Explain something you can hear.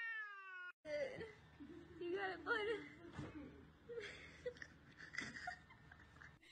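A cat meows loudly and repeatedly.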